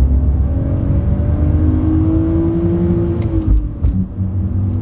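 A car engine's pitch rises and then drops at a gear change.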